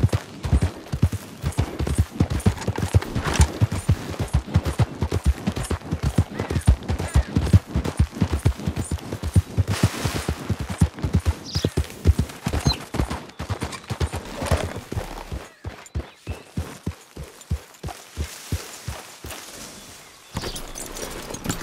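Horse hooves thud rapidly on grass as a horse gallops.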